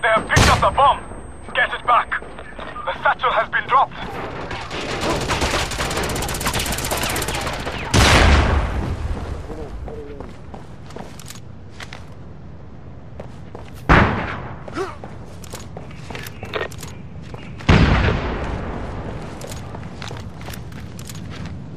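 Footsteps run on metal and concrete.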